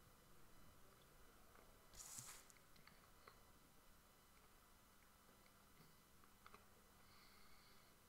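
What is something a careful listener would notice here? Playing cards shuffle and riffle in hands.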